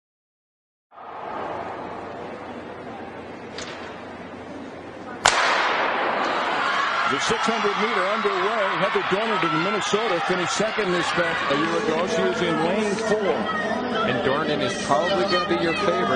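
A crowd cheers and roars in a large echoing indoor arena.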